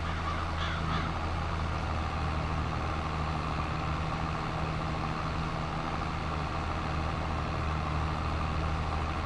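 A tractor engine drones steadily at close range.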